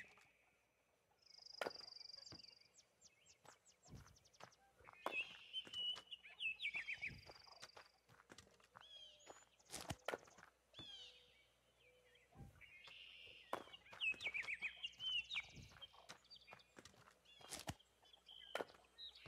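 Hens cluck softly nearby.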